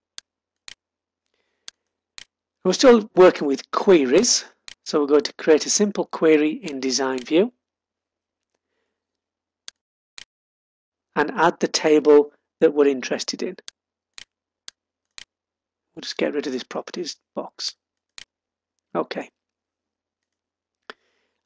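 A computer mouse clicks now and then.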